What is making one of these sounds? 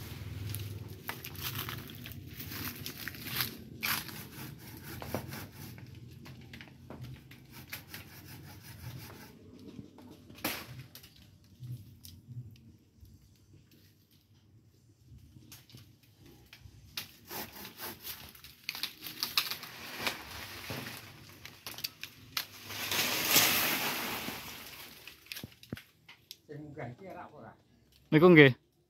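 Leaves and branches rustle as a man climbs in a tree.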